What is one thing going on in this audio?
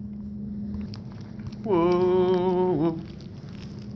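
A paper packet crinkles in a hand.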